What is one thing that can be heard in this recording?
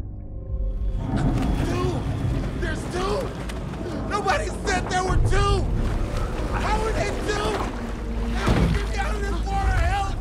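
Waves slosh and splash on the open sea.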